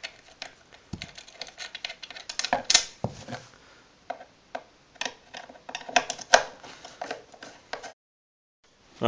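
A screwdriver scrapes and clicks against a metal screw.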